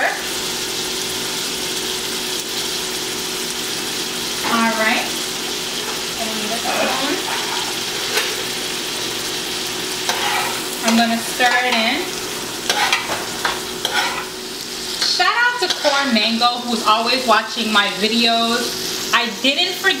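Food sizzles steadily in a pot.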